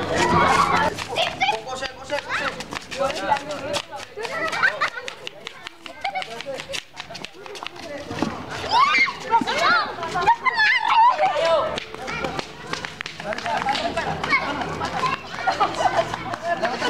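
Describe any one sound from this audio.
Children shout and laugh outdoors.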